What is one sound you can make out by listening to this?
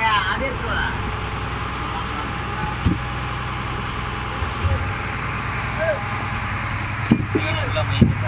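A steady engine hum drones throughout.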